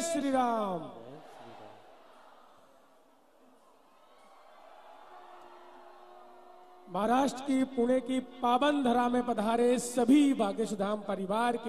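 A young man chants loudly through a microphone.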